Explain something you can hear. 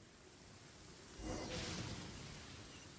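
A magical shimmering whoosh rises and fades.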